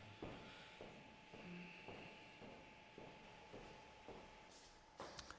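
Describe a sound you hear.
Footsteps tap steadily across a hard floor.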